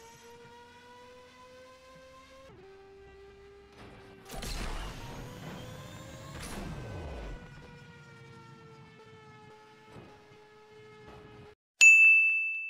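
A video game car engine revs at speed.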